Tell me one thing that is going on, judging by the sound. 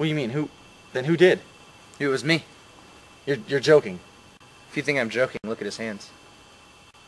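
A young man speaks in short bursts close by outdoors.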